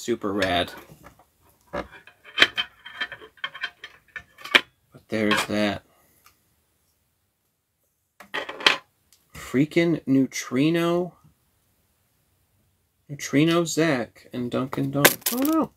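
Small plastic toy parts click and rattle as they are handled.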